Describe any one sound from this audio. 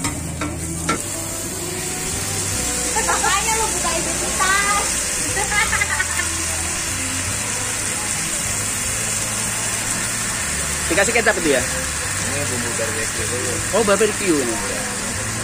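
Food sizzles steadily on a hot griddle.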